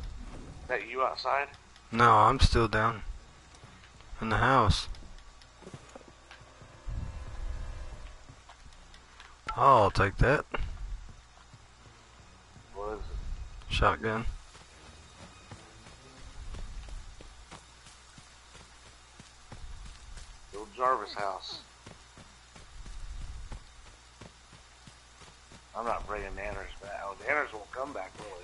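A young man talks in short bursts into a headset microphone, with pauses between.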